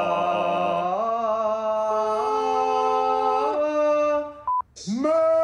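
A man sings in a loud, rising voice over an online call.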